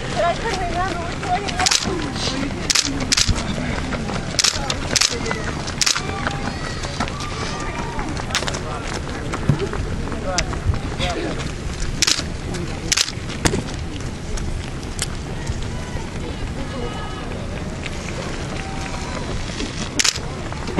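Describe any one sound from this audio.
Runners' footsteps patter on an asphalt road.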